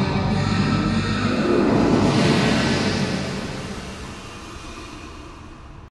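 A man sings loudly, then fades away.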